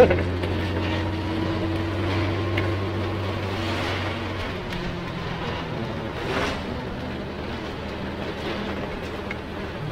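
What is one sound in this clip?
Motorbikes ride past nearby.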